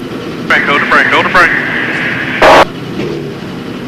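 A race car engine roars steadily.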